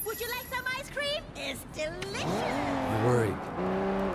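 Car tyres screech on the road.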